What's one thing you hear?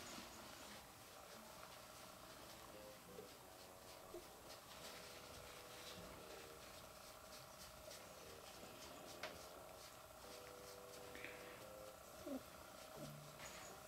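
A tissue rubs softly against a cat's fur.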